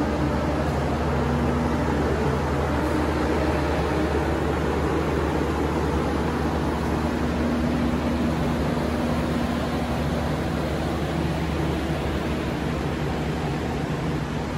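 A train engine hums steadily nearby.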